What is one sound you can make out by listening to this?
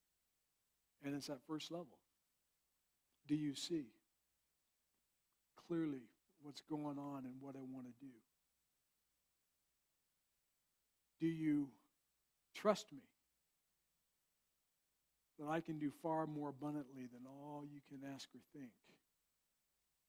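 A man speaks calmly in short phrases through a microphone, with pauses between.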